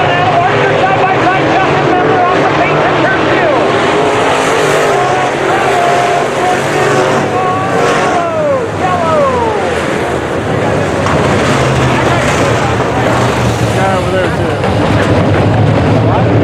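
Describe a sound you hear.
Race car engines roar loudly nearby.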